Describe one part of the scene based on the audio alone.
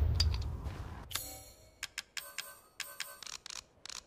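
Menu clicks tick quickly.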